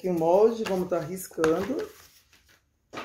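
Plastic sheeting crinkles.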